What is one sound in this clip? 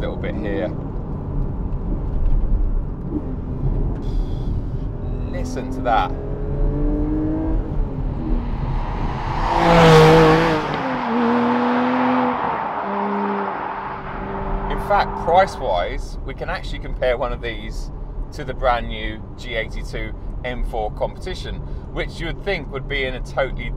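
A car engine revs and hums inside the cabin.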